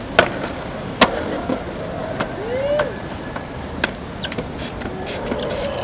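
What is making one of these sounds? Skateboard wheels roll on concrete.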